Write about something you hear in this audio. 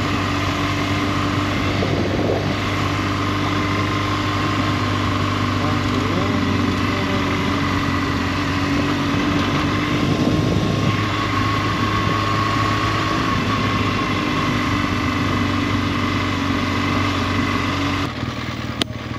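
A motorcycle engine hums steadily as it rides.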